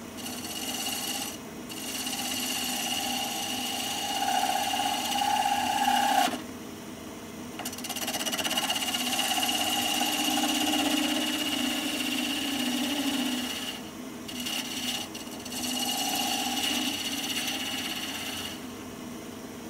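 A chisel scrapes and cuts into spinning wood, in bursts.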